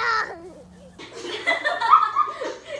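Teenage girls laugh and shriek.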